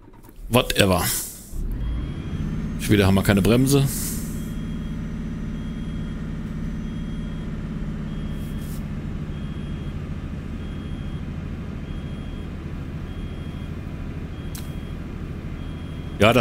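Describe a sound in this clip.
A truck engine starts and idles with a steady low rumble.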